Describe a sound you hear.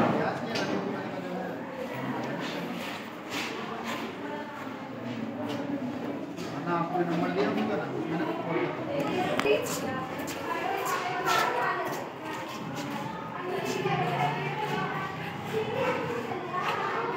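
Young girls chatter and talk with each other nearby.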